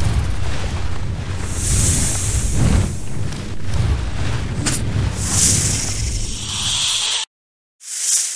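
Fire roars and crackles with a deep rumble.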